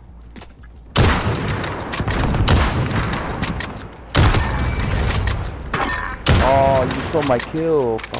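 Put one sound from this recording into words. A rifle fires loud, booming shots that echo away.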